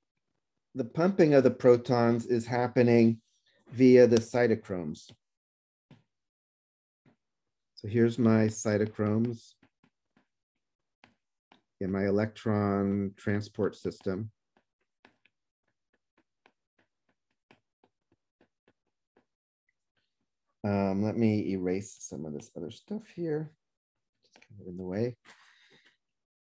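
A man explains calmly, heard through a microphone in an online call, with pauses between phrases.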